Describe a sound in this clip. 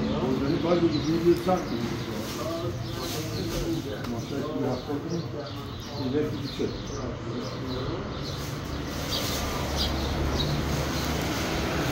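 A plastic sack rustles.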